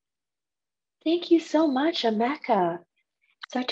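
A young woman speaks warmly over an online call.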